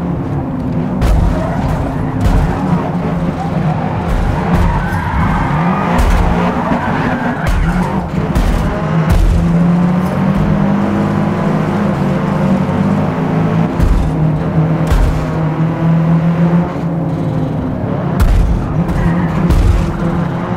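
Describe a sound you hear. Cars bump and crash into each other with loud thuds.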